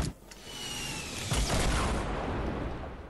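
A rocket whooshes through the air.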